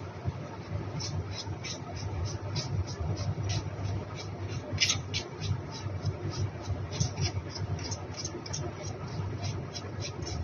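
A paintbrush brushes softly against a plastic toy.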